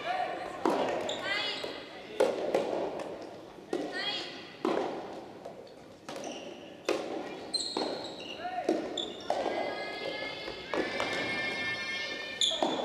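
Rackets strike a ball back and forth in a large echoing hall.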